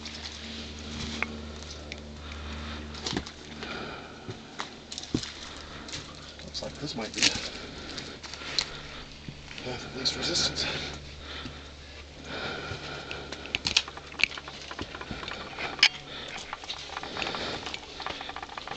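Boots scrape and crunch on rock as a person climbs.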